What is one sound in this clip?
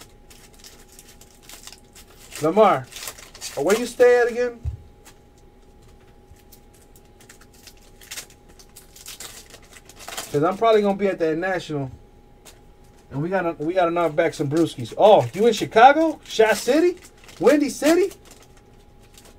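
A foil card wrapper crinkles and rustles as it is torn open.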